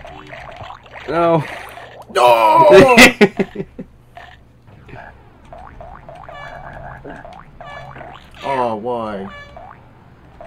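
A cartoon frog hops with quick springy sound effects.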